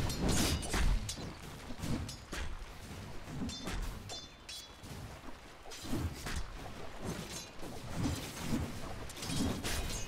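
Game weapons clash and magic spells burst in a fast battle.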